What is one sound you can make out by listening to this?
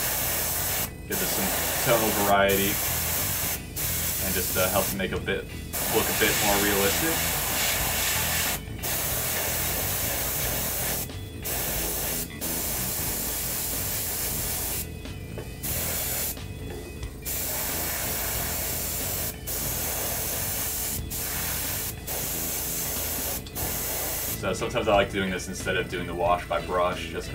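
An airbrush hisses steadily in short bursts.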